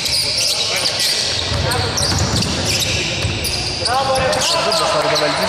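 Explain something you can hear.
A basketball bounces and thuds on the floor.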